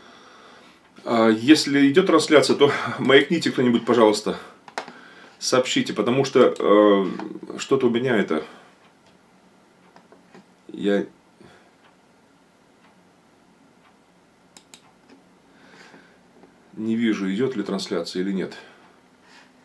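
A middle-aged man speaks calmly and close by, in bursts with long pauses.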